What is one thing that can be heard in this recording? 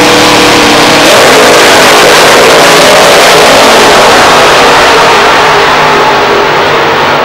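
A nitro-fuelled dragster launches and roars down the strip at full throttle.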